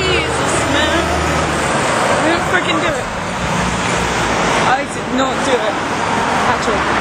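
A young woman talks close up.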